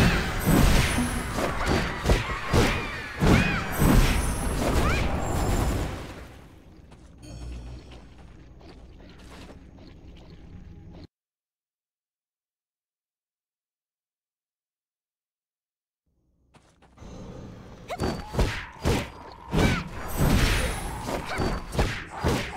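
Spell effects crackle and burst in rapid, loud blasts, falling silent for a while before returning.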